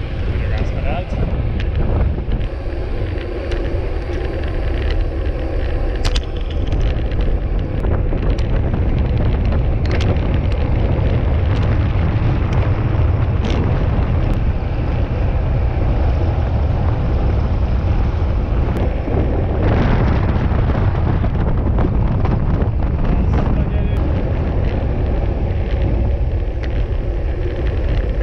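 Wind roars loudly and steadily over the microphone of a fast-moving bicycle.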